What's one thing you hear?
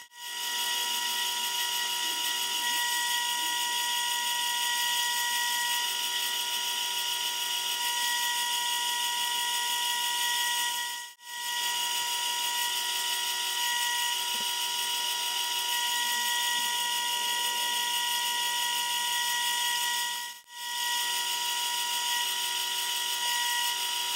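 A lathe motor whirs with a steady high whine.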